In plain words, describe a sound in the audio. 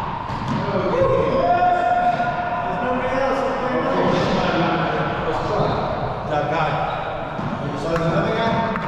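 Middle-aged men talk casually in an echoing court.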